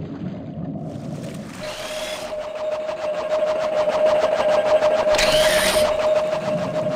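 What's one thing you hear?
Water splashes and sloshes as a figure wades and swims.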